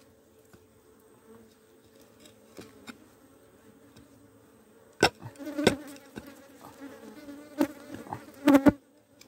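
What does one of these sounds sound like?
A small trowel scrapes and digs into damp soil.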